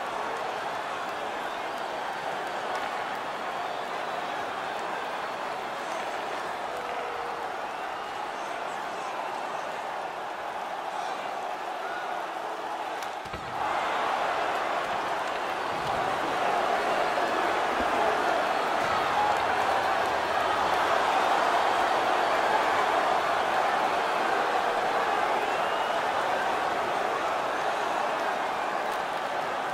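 A large crowd murmurs and roars in an echoing arena, growing louder partway through.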